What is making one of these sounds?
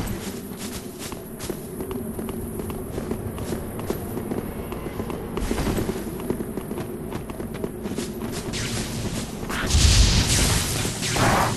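Armoured footsteps run on stone.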